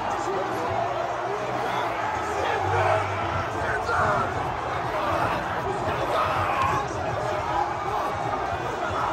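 A large crowd cheers and sings loudly all around, outdoors.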